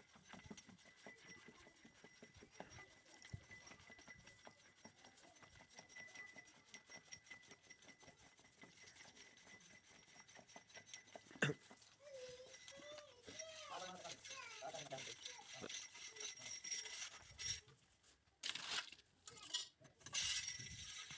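A metal pipe knocks and clanks rhythmically as it is worked up and down.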